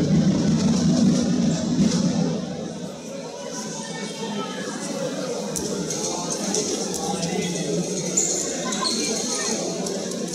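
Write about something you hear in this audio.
Several men talk in low voices nearby in a large echoing hall.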